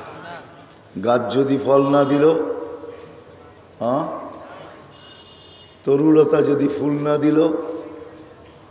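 An elderly man preaches loudly into a microphone in a sing-song, chanting voice, echoing through loudspeakers.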